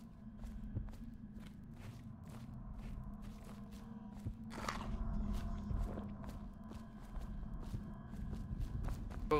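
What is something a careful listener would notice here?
Footsteps thud slowly and steadily on a hard floor.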